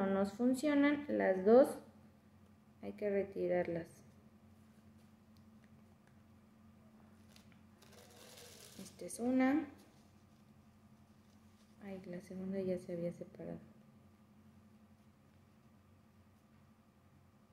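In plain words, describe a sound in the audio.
Paper rustles as it is folded.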